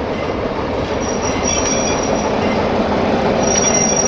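Metal wheels clatter and squeal on rails.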